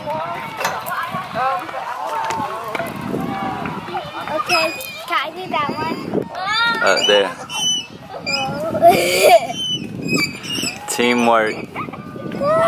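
Young girls talk and squeal excitedly close by.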